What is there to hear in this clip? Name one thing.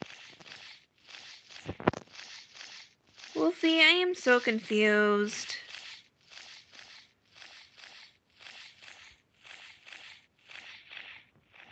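Large wings flap in a steady rhythm.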